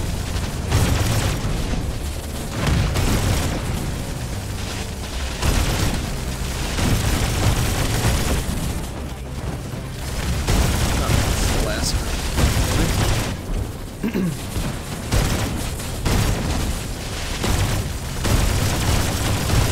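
Explosions boom again and again.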